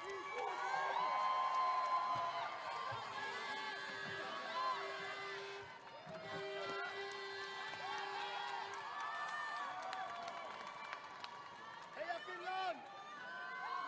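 A group of young cheerleaders shout in unison.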